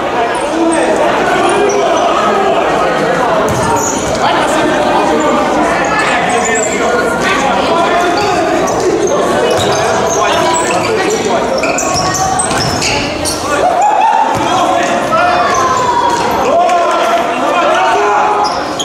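A ball thuds on the court.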